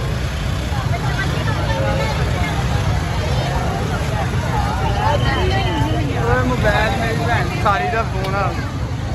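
A large crowd chatters outdoors all around.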